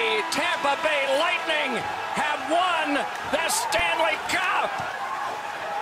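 Young men shout and cheer excitedly close by.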